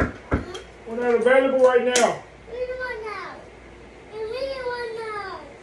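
A young child talks and squeals close by.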